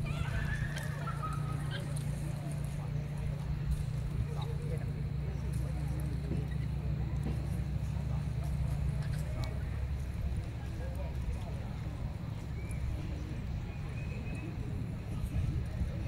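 Horse hooves thud and shuffle on soft dirt.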